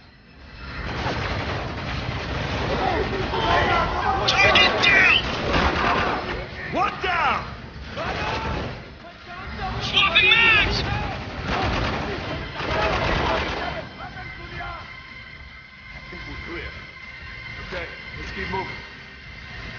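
Automatic gunfire rattles in bursts nearby.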